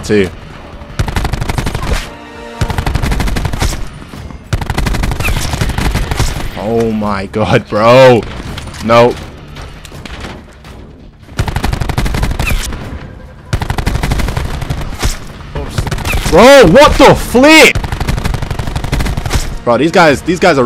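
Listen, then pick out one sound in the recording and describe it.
Rapid gunfire crackles in bursts from a video game.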